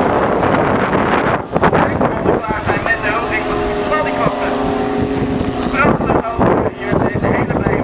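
Racing car engines roar and whine as the cars speed past.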